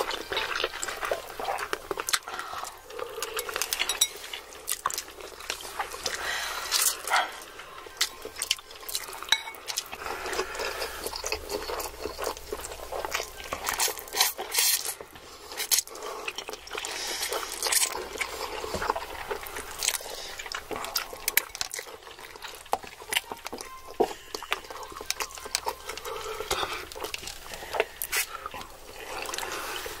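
People chew noodles with soft, squishy sounds.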